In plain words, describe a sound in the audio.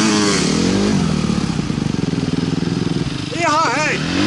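A dirt bike idles with a rapid, rattling putter.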